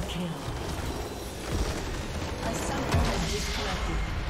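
Magic spells burst and crash in a video game battle.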